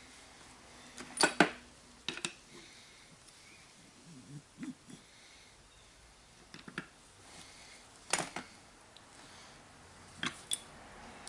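Metal parts clink and knock against each other.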